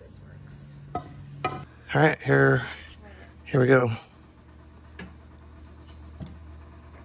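Metal and wood knock and clank as a heavy crate is shifted.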